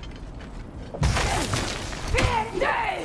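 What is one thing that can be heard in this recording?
An axe swings through the air with a whoosh.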